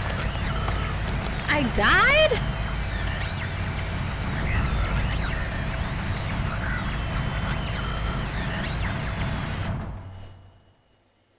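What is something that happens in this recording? A deep rumbling drone plays, then cuts off abruptly.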